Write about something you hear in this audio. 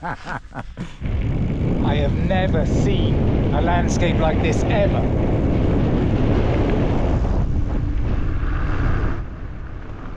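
Wind rushes loudly past a cyclist riding outdoors.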